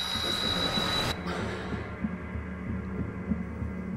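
A woman speaks in a hushed, tense voice close by.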